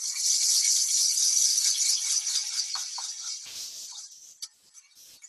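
A brush scrubs briskly inside a metal pot with a rough, scratchy sound.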